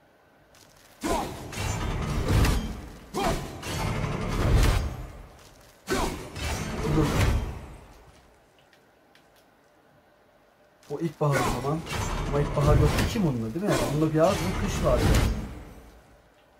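An axe smashes into stone with a loud crash.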